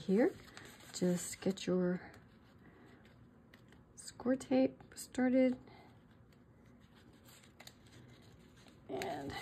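Paper rustles softly as hands handle it.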